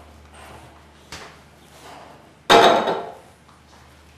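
A glass is set down on a hard countertop.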